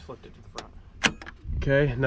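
A switch clicks once.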